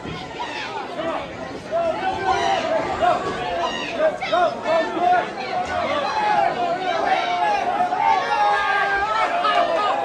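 A crowd of men and women cheers and shouts loudly in a large echoing hall.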